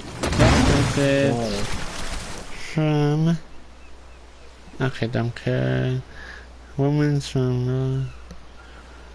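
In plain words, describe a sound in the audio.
A large creature lets out deep, croaking calls.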